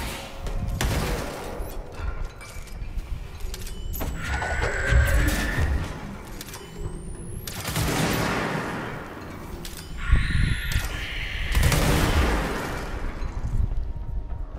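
A pistol fires rapid bursts of shots.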